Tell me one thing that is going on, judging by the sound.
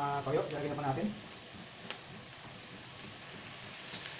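Sauce pours into a hot pan.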